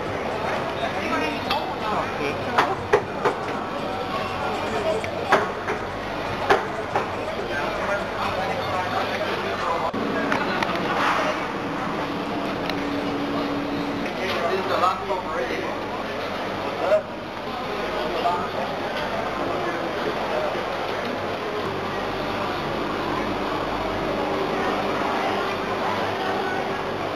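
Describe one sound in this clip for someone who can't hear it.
A crowd murmurs and chatters in a busy indoor hall.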